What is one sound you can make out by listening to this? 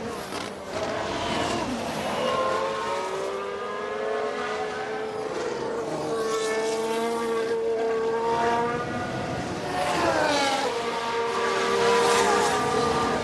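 A racing car engine whines at high revs, rising and falling as it speeds past.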